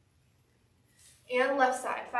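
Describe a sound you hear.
A woman speaks clearly and with animation, close by.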